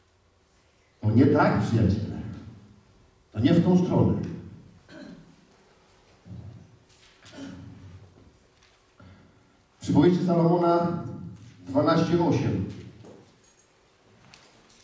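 A man speaks loudly into a microphone in a large echoing hall.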